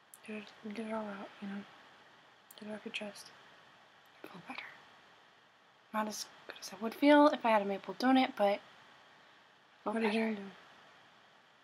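A young woman sings in short phrases close to a microphone.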